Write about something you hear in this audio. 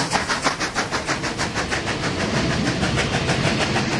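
Passenger carriage wheels clatter over the rails.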